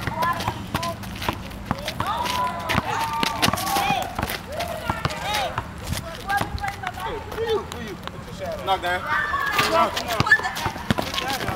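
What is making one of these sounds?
Young men shout and talk excitedly outdoors.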